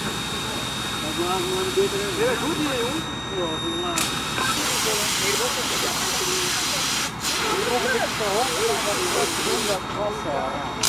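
Men talk nearby in a calm way.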